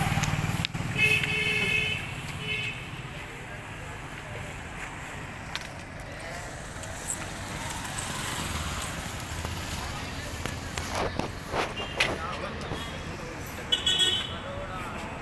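A vehicle horn honks briefly.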